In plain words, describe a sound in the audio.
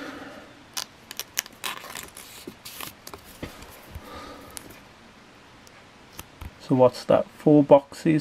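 A plastic wrapper crinkles between fingers.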